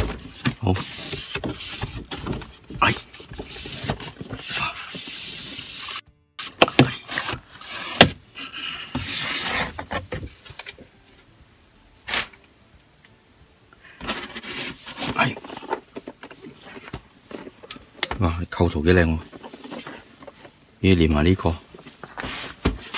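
Cardboard rustles and scrapes as a box is slid open by hand.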